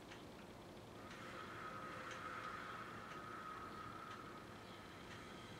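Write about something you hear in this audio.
A man hums a long steady note.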